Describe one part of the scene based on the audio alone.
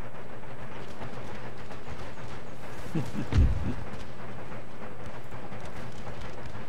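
Gunfire crackles in the distance.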